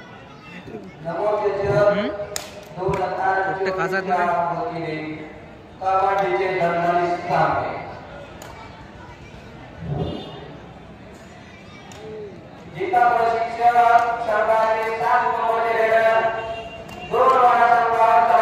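A young man chants loudly in a steady, drawn-out voice.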